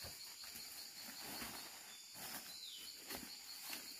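Bamboo shoots drop with soft knocks into a woven basket.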